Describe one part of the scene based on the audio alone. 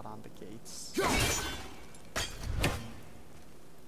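An axe strikes something with a loud crash.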